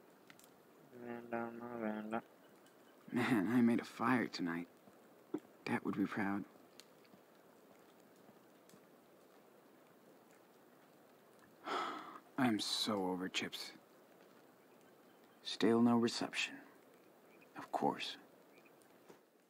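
A young man talks calmly nearby.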